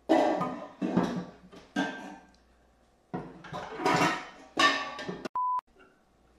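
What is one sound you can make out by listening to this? Metal pans clatter and clang.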